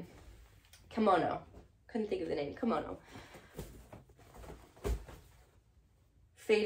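Fabric rustles as clothing is handled.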